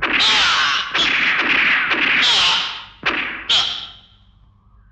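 A man screams loudly in anguish.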